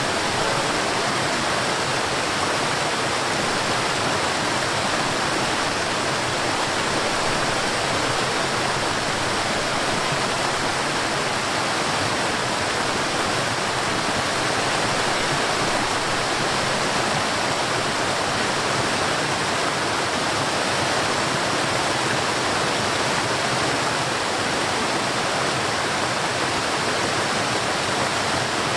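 A waterfall splashes and rushes steadily over rocks.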